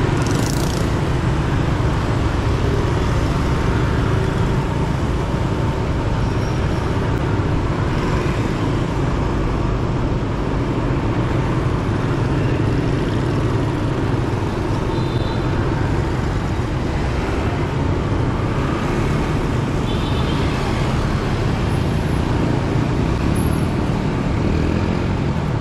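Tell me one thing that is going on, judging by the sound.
Motorbike engines hum steadily in busy street traffic.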